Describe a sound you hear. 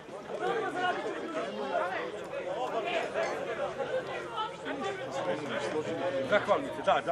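Several men talk loudly over one another nearby, outdoors.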